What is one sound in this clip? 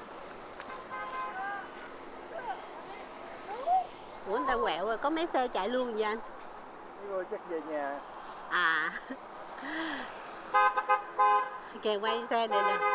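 A young woman speaks with animation close by, outdoors.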